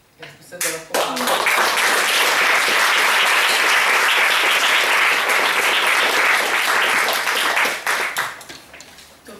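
A small audience applauds.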